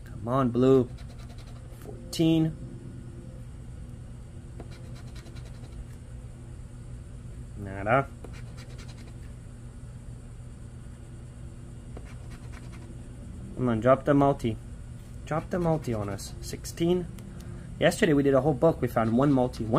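A coin scratches across a scratch card.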